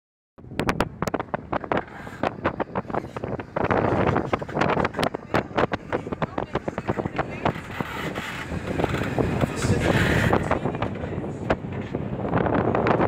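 Rigging rattles and taps in the wind.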